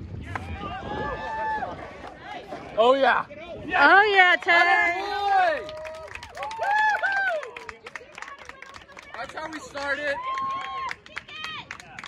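Young men shout and cheer nearby outdoors.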